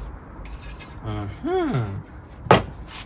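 A metal bar scrapes and squeaks against a metal frame.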